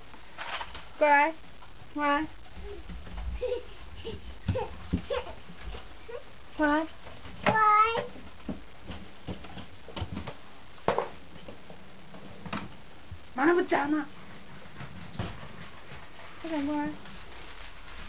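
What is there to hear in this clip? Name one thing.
A baby squeals and babbles loudly nearby.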